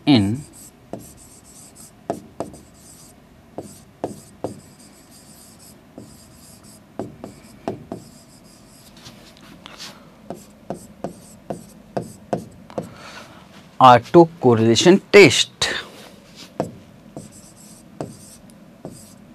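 A pen taps and scratches on a writing board.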